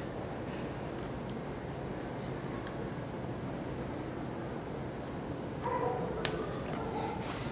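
Small plastic parts click and snap as hands pry apart a mirror housing.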